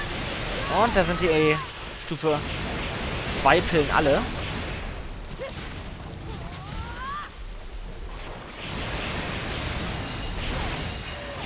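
Blades slash and clang in a fight.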